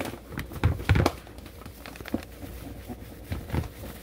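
Flour pours softly into a plastic bowl.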